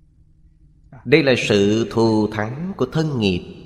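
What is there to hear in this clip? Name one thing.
An elderly man speaks calmly and expressively into a close microphone.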